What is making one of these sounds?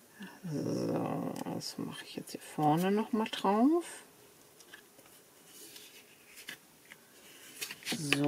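A tool rubs softly across paper.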